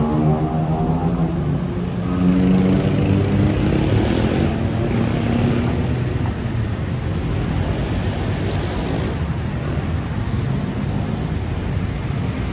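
City traffic hums steadily in the distance, outdoors.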